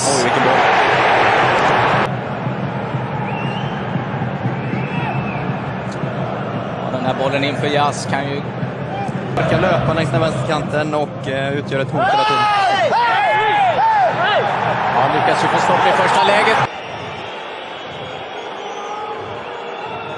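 A large crowd roars and chants in an open stadium.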